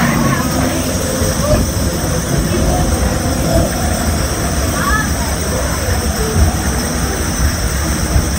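A cart rattles and rumbles steadily along rails.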